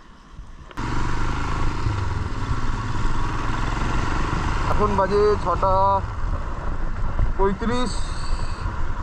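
A motorcycle engine rumbles steadily while riding.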